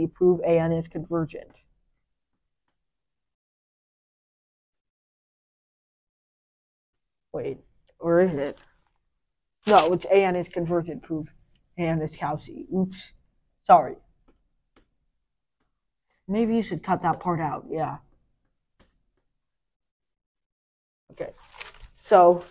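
A boy speaks calmly and close by, in short bursts with pauses.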